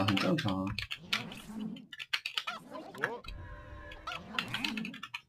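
Magic spells crackle and zap in a fight between game figures.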